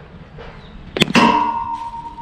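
A cricket bat strikes a ball with a sharp, ringing crack.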